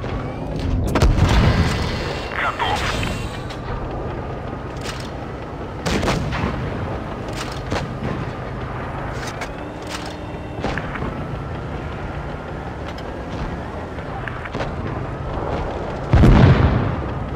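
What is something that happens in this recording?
A cannon fires with heavy booming blasts.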